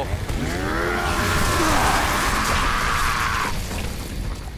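A chainsaw revs loudly and grinds through flesh.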